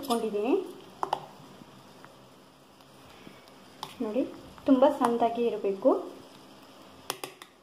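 A spoon stirs and scrapes thick batter in a metal bowl.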